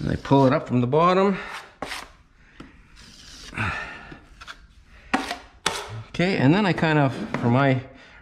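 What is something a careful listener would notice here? A metal scraper scrapes filler along a ceiling.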